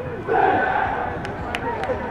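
A group of young men shout together in a team cheer outdoors.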